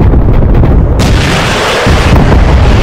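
A rocket whooshes away.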